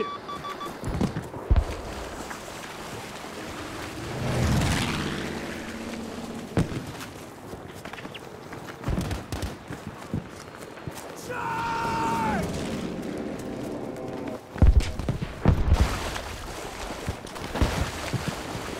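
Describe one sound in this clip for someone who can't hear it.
Gunshots crack at intervals.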